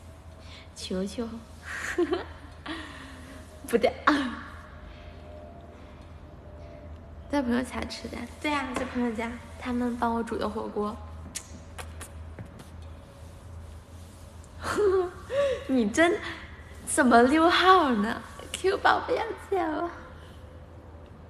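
A young woman talks animatedly and close up into a phone microphone.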